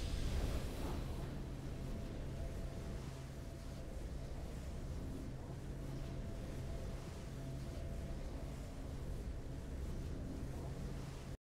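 A triumphant game victory tune plays with steady low tones.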